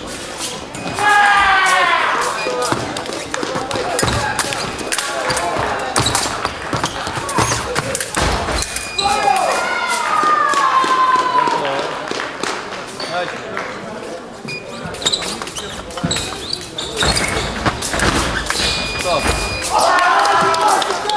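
A young man shouts loudly in an echoing hall.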